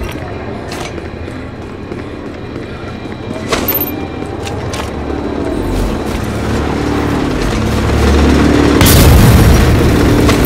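A vehicle engine rumbles and roars as it drives.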